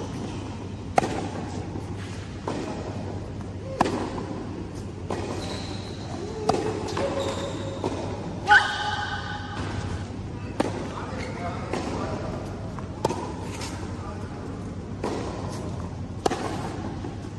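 Tennis balls are struck with rackets, echoing in a large indoor hall.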